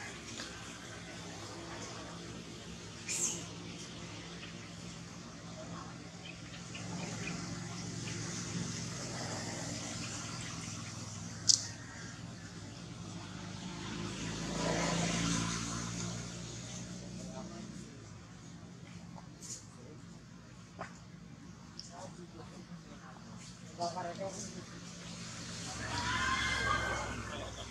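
A monkey chews and munches on soft fruit up close.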